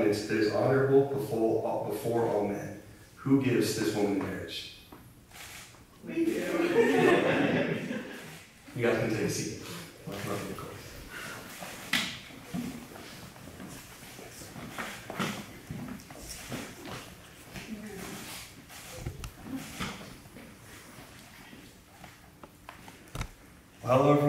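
A crowd of men and women chat and murmur nearby in a large, echoing room.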